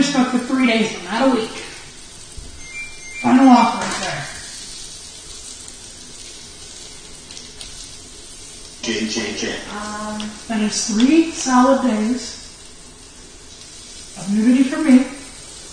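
A woman talks casually nearby in a room.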